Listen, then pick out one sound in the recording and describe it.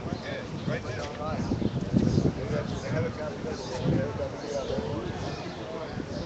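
A crowd of adults talks outdoors.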